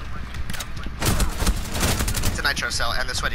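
Rapid gunfire bursts loudly from an automatic rifle.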